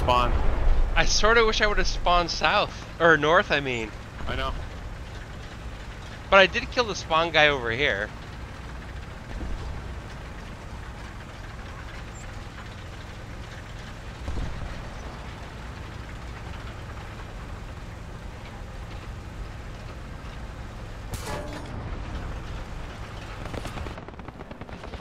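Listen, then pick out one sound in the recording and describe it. A heavy tank engine rumbles steadily as the tank drives.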